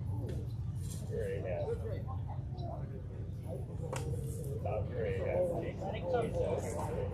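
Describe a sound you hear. Young players chatter and shout in the distance.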